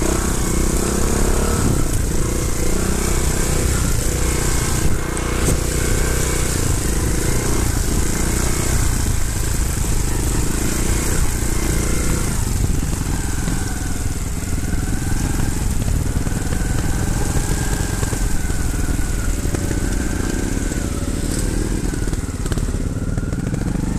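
Tyres crunch and bump over a rough dirt trail.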